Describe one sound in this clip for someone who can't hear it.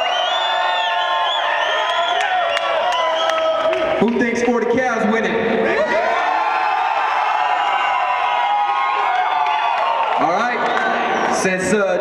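A man speaks loudly into a microphone through loudspeakers in a large echoing hall.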